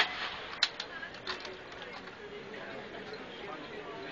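Rifles clack as guards handle them.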